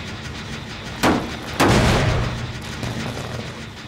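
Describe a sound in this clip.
A machine clanks and rattles loudly as it is struck.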